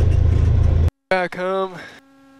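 A young man speaks through a headset microphone.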